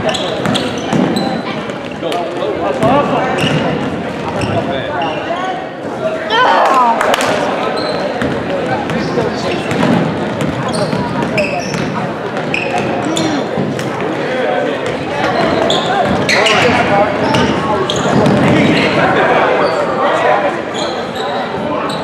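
A crowd of spectators talks and cheers in an echoing hall.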